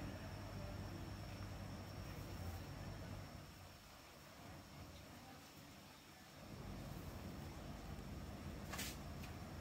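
A cord rustles softly as hands pull and tuck it.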